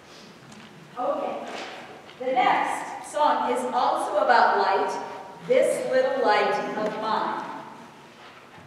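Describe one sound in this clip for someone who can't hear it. A woman speaks to the audience.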